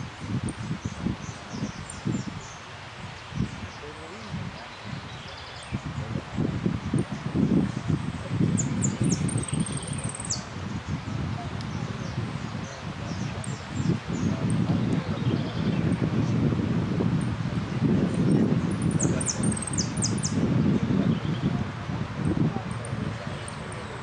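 A small caged bird chirps in short, high bursts.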